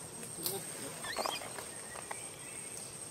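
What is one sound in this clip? A baby monkey squeals shrilly a few times nearby.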